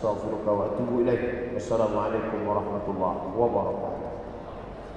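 A young man chants melodically into a microphone, echoing in a large hall.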